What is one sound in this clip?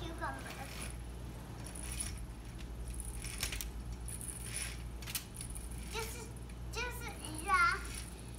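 A window blind rattles and rustles as it is pulled up in short tugs.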